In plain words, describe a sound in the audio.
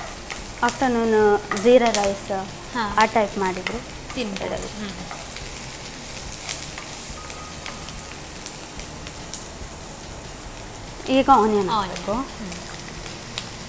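A young woman talks calmly through a microphone.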